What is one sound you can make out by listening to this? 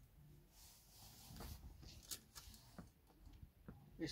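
Plastic hangers click and clack against a metal rail.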